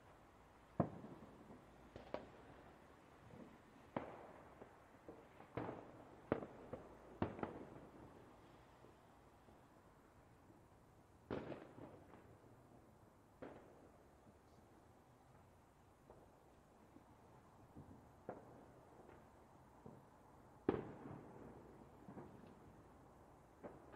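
Fireworks boom and crackle at irregular intervals, echoing away after each burst.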